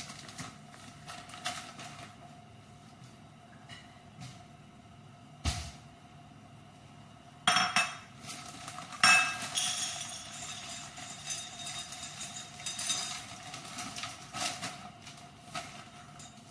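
Liquid simmers and bubbles in a pot.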